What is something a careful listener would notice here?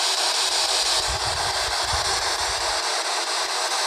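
Buttons click on a handheld radio.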